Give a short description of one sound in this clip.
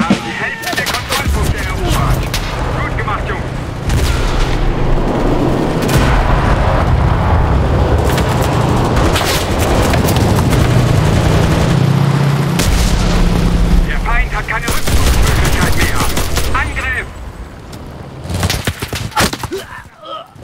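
Gunshots crack loudly nearby.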